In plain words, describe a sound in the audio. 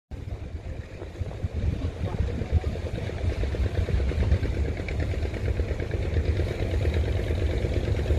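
A boat engine chugs steadily, growing louder as it approaches.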